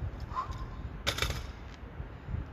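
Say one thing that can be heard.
A heavy weight plate thuds onto hard ground.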